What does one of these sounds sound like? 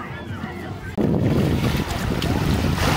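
Small waves wash onto the shore.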